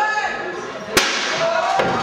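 A wrestler lands with a heavy thud after a dive from the top rope.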